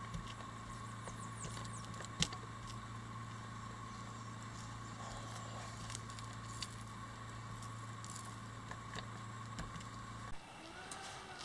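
A paint roller rolls softly over a wet surface.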